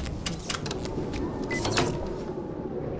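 A heavy electrical switch lever clunks as it is pulled down.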